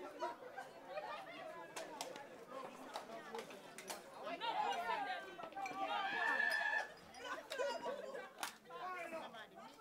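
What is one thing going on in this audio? A crowd of men and women talks and shouts excitedly close by.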